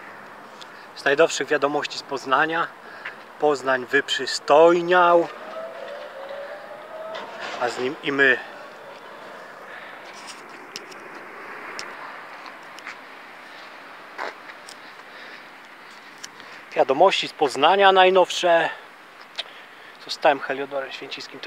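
A man talks calmly, close to the microphone.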